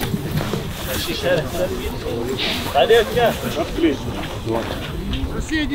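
Adult men talk and banter nearby outdoors.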